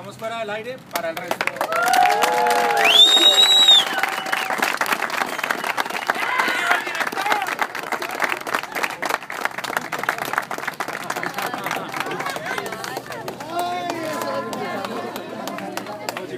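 A crowd claps hands quickly and steadily.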